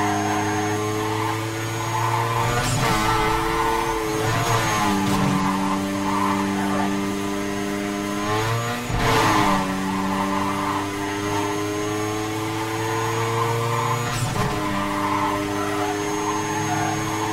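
A car engine roars at high speed, its pitch climbing and dropping sharply at each gear shift.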